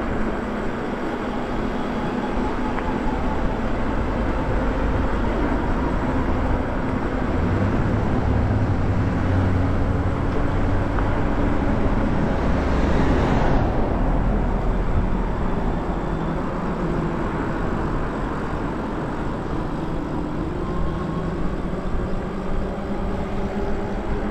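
Wind rushes steadily past while riding outdoors.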